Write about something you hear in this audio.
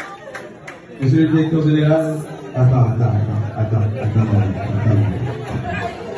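A man speaks loudly into a microphone, heard through loudspeakers in a large room.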